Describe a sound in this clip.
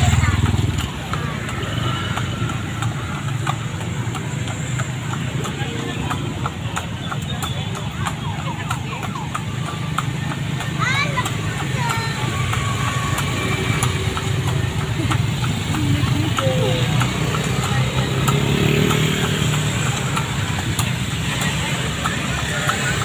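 Horse hooves clop steadily on a paved road.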